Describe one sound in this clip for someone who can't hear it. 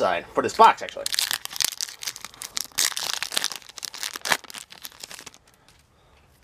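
A foil booster pack crinkles and tears open.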